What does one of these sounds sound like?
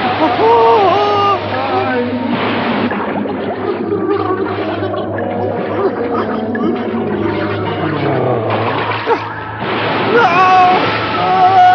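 Stormy waves crash and roar.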